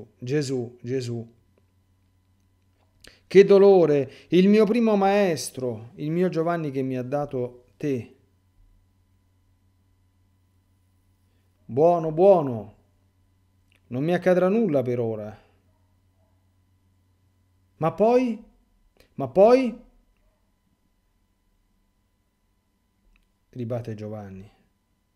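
A middle-aged man speaks slowly and thoughtfully into a close microphone, with long pauses.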